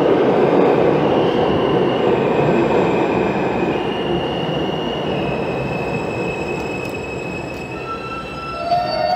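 Train brakes squeal as the train slows.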